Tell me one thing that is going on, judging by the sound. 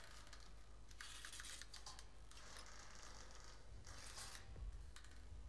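A woman rummages, with objects rustling and clattering softly.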